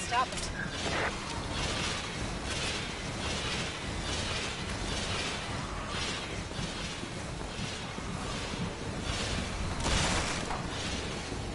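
Footsteps thud steadily on a stone floor.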